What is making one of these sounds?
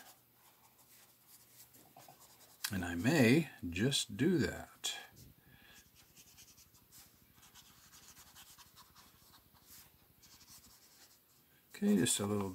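A marker pen scratches softly across paper.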